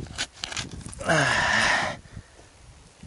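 A man speaks briefly and casually close by.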